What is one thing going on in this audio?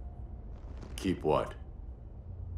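A second man answers in a deep, gruff voice.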